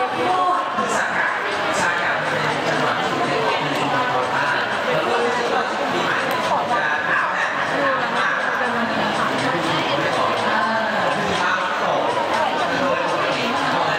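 A crowd of people talks and murmurs loudly all around.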